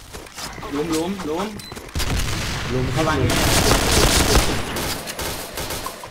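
Gunfire rings out in short bursts.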